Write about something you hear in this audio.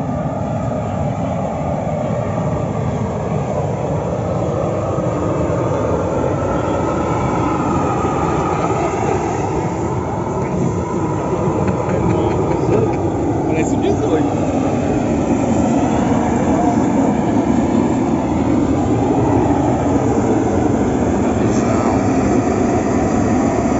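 A gas burner roars loudly.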